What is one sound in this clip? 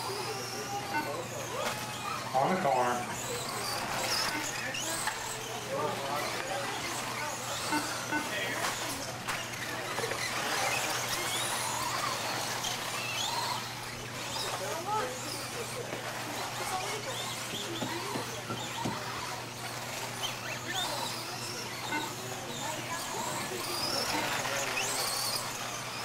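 Small electric motors whine as toy cars race over dirt.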